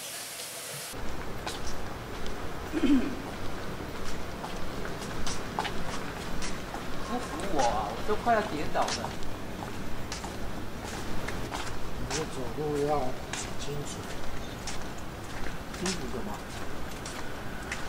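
Footsteps tap along pavement outdoors.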